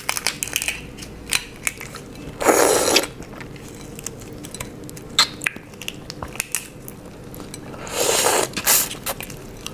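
Shrimp shells crackle and snap as fingers peel them close to a microphone.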